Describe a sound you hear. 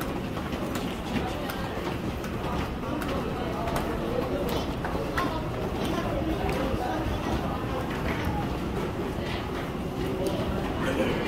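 Footsteps tap on stone steps as someone climbs quickly.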